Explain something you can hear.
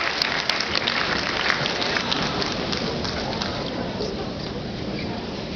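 A crowd applauds and fades.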